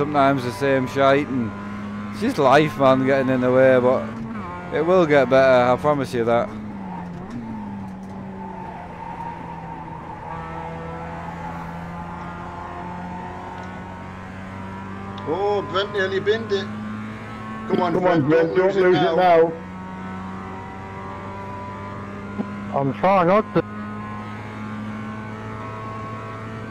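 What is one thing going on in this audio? A racing car engine hums steadily.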